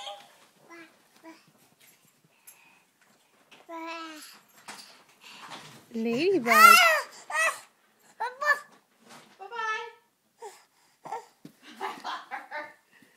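A baby babbles and squeals up close.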